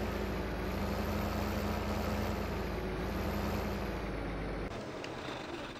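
A combine harvester engine rumbles steadily.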